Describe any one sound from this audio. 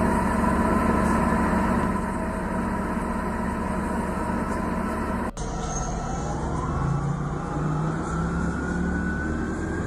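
A bus engine hums steadily and its whine rises as it pulls away.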